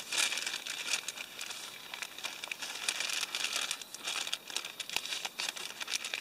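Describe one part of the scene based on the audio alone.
A plastic bag rustles as its contents are poured into a pot.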